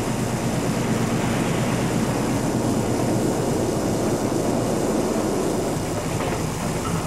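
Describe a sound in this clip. A train rumbles across a bridge.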